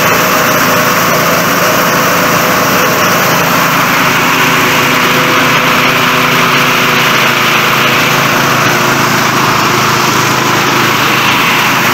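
A threshing machine's engine roars steadily close by.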